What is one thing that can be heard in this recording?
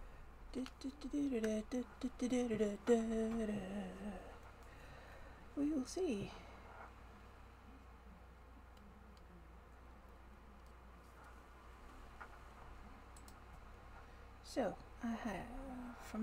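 A woman speaks close to a webcam microphone, in short bursts.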